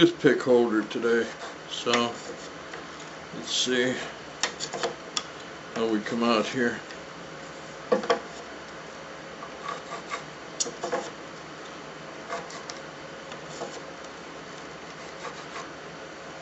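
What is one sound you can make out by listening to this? A hard plastic piece clicks and taps as it is handled.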